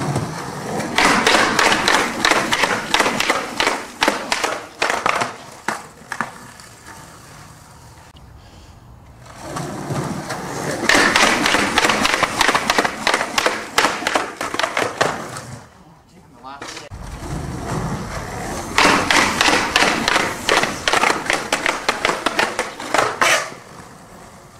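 Skateboard wheels roll and grind loudly along concrete.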